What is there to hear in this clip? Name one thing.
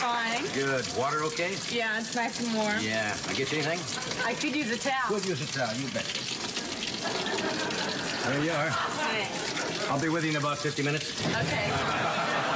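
An elderly man talks with a woman, close by.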